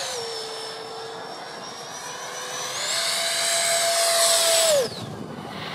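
A small jet engine whines overhead, its pitch rising and growing louder, then dropping sharply away.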